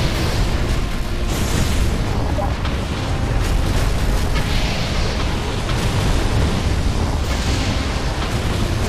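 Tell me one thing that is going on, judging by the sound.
Explosions rumble low and steadily.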